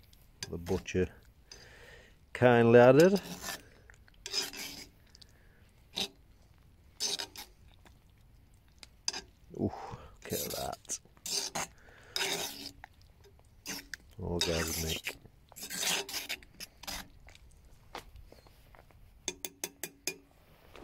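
A metal spoon stirs and scrapes inside a pot.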